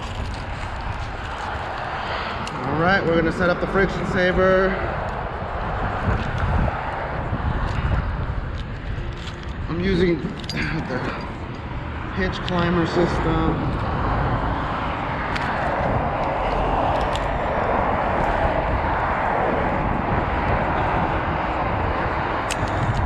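Metal climbing gear clinks and rattles.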